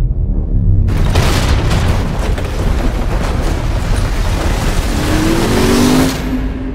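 Rocks crash and tumble down in a loud rockslide.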